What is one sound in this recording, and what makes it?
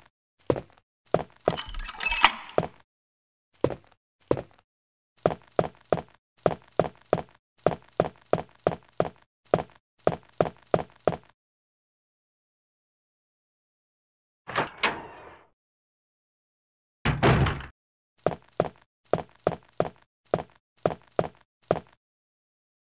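Footsteps thud on a wooden floor at a quick pace.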